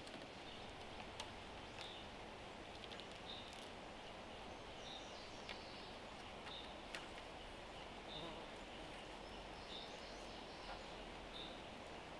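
Cord rustles and creaks as it is pulled tight around wooden poles.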